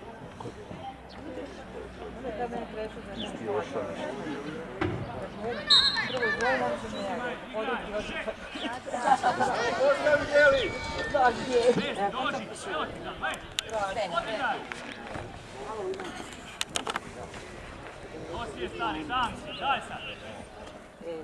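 Young players shout and call out across an open field outdoors.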